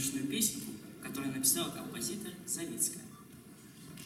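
A young girl reads out announcements in an echoing hall.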